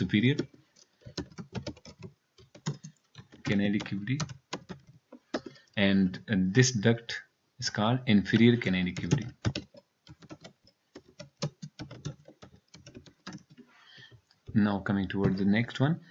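Keys clatter as someone types on a computer keyboard.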